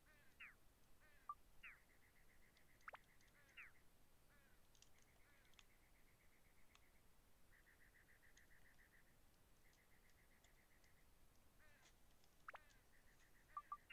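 Short electronic menu chimes and swooshes sound from a video game.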